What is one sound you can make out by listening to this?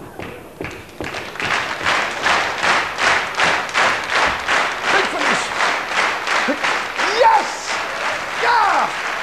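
A large audience claps along in a steady rhythm in a big echoing hall.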